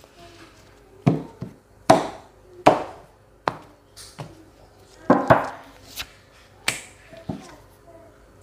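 Cards slap and shuffle on a table.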